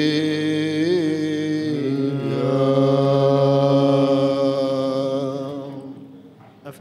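A man chants a long, sustained melody in a large echoing hall.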